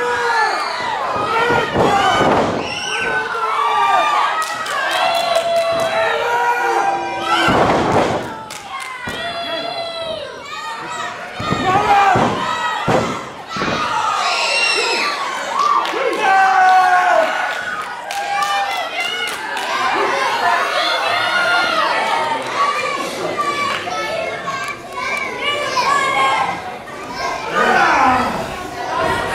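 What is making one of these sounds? A crowd of spectators cheers and shouts throughout.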